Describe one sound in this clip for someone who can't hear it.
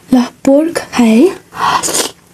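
A young woman makes short humming sounds close to a microphone.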